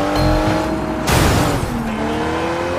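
A car crashes with a loud bang.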